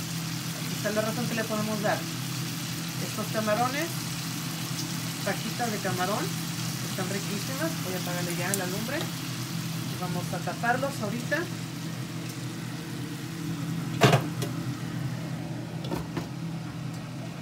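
Shrimp and vegetables sizzle steadily in a hot pan.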